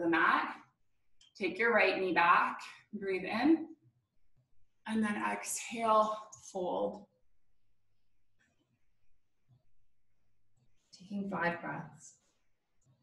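A young woman speaks calmly into a nearby microphone, in short phrases with pauses.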